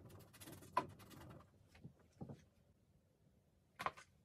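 A brush dabs on a plastic palette.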